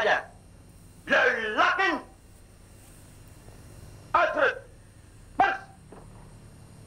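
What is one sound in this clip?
A man shouts loudly in short bursts.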